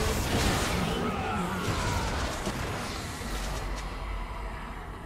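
Magical spell effects whoosh and crackle, then fade away.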